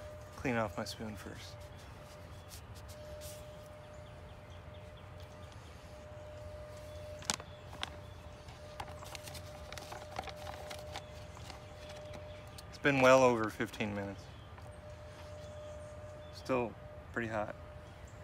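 A plastic food pouch crinkles as it is handled.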